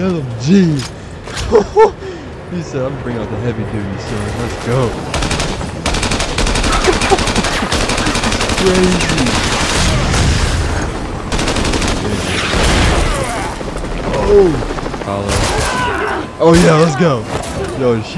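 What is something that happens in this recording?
A young man talks and exclaims with excitement close to a microphone.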